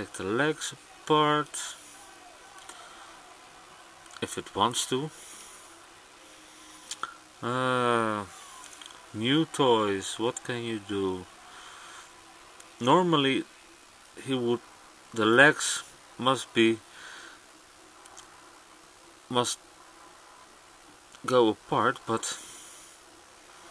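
Small plastic parts click and snap between fingers.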